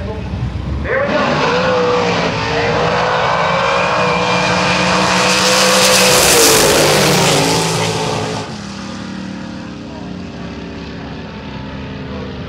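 Drag racing engines roar loudly as two cars launch and speed off down the track.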